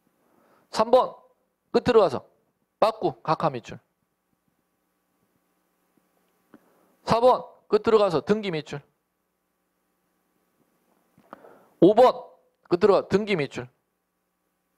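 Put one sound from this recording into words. A man lectures into a microphone in short bursts with pauses between them.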